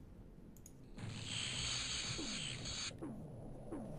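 A muffled explosion rumbles and hisses.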